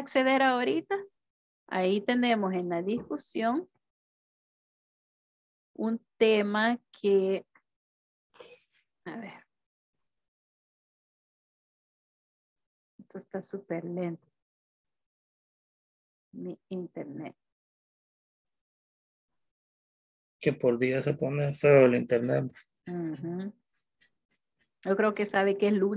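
A woman speaks calmly and clearly over an online call.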